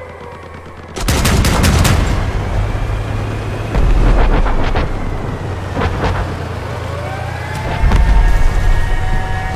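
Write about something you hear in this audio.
A large gun fires with loud booming blasts.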